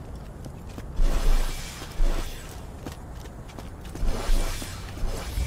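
An electric gun fires in crackling bursts.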